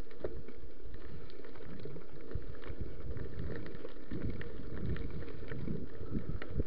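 A bicycle's frame clicks and clatters over bumps.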